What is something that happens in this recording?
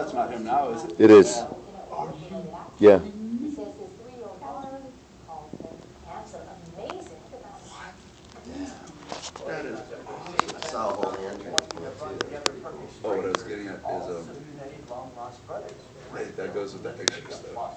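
A man talks through a television loudspeaker.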